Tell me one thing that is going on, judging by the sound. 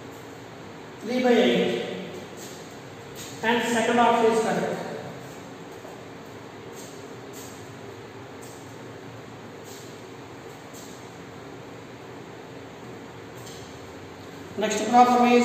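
A man speaks loudly and calmly, close by.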